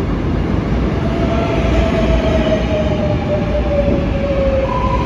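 Train wheels squeal on the rails with a steady, slowly falling whine.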